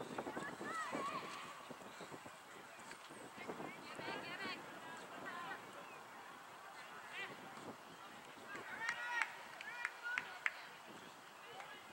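Young women shout and call out across an open field at a distance.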